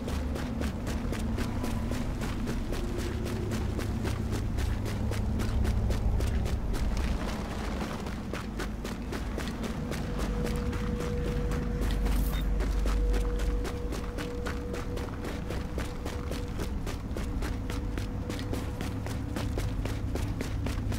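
Footsteps run quickly over crunchy snow.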